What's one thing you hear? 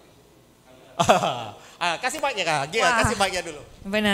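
A middle-aged man laughs into a microphone.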